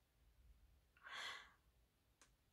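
A young woman laughs softly, close to the microphone.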